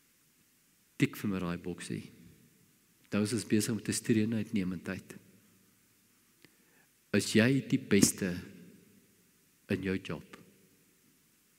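An elderly man speaks calmly and deliberately through a microphone, pausing between phrases.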